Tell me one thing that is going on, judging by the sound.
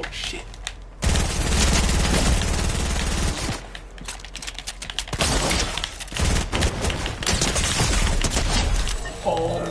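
A young man shouts loudly into a close microphone.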